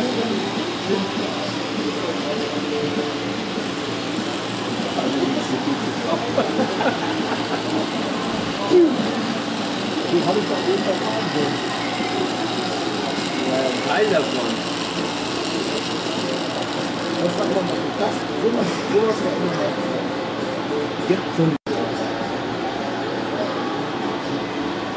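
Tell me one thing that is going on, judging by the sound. A model train rumbles and clatters steadily along its tracks.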